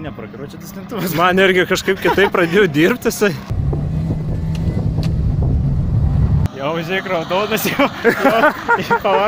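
Car tyres squeal loudly on asphalt.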